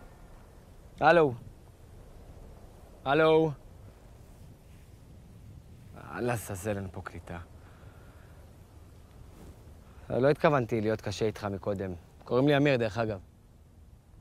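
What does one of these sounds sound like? A young man speaks calmly and close by, in short phrases with pauses.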